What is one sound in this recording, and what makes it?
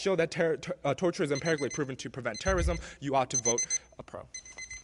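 A young man reads aloud clearly into a microphone.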